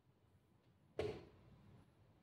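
A chess piece is set down on a wooden board with a sharp knock.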